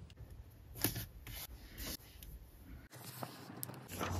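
A sheet of paper crackles as it is held up.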